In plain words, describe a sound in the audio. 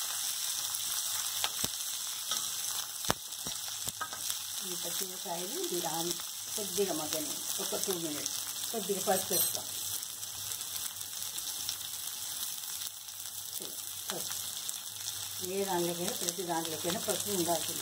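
Food sizzles steadily in hot oil.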